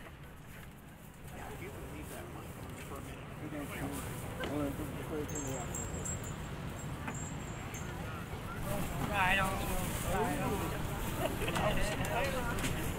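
A small band plays music together outdoors.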